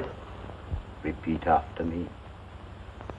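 An elderly man speaks softly nearby.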